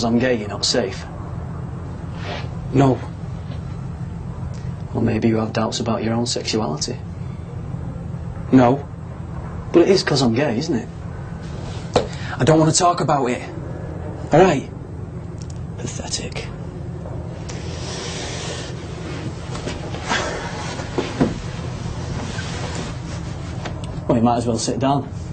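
A second young man answers quietly, close by.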